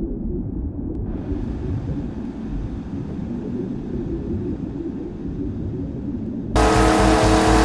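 Muffled water swirls and bubbles underwater.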